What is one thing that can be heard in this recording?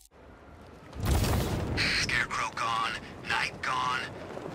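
Wind rushes loudly past a gliding figure.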